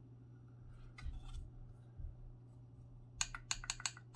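A small metal key clicks sharply several times.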